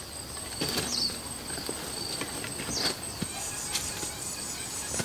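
Footsteps crunch through dry grass and brush.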